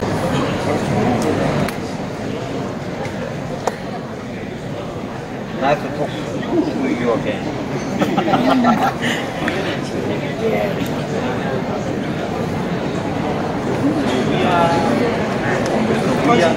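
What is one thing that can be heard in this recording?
A man and a woman talk back and forth nearby over a murmuring crowd.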